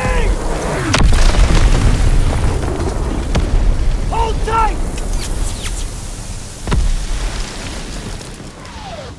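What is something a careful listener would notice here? Waves slap against a boat's hull.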